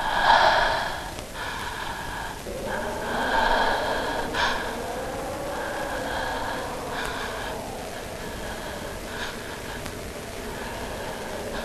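A man groans weakly up close.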